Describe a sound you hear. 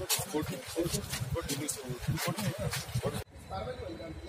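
Several men talk and argue loudly outdoors.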